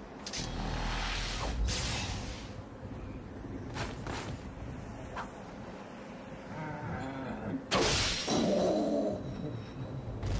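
A sword slashes and strikes a dragon with sharp impacts.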